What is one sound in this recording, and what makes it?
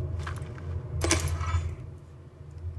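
A short electronic chime rings out from a video game.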